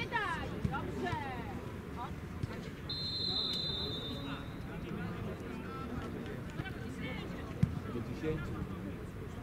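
Young men shout to each other in the distance outdoors.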